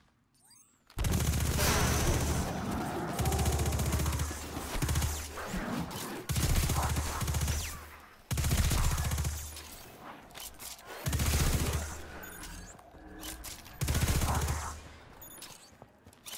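Rapid gunfire blasts and booms loudly in bursts.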